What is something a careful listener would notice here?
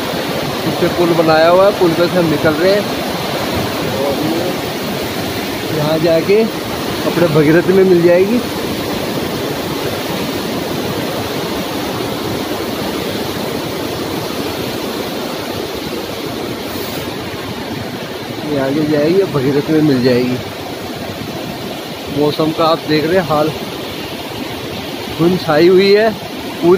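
A rocky river rushes and roars steadily nearby.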